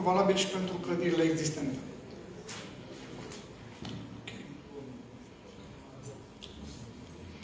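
A man speaks calmly through a microphone and loudspeakers in a large echoing hall.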